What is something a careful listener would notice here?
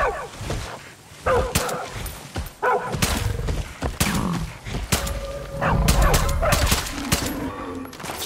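A bison bellows and grunts.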